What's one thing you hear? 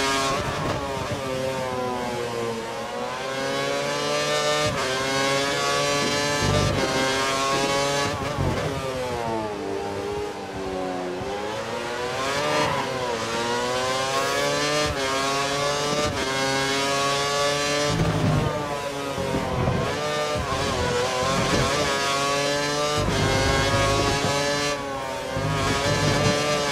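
A Formula One car's V8 engine screams at high revs, rising and dropping as it shifts gears and brakes for corners.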